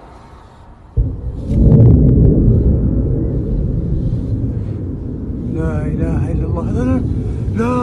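A rocket roars with a deep, loud rumble.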